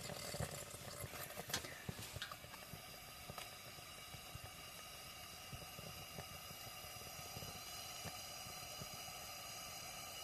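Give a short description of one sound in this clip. A kerosene hurricane lantern flame burns with a soft hiss.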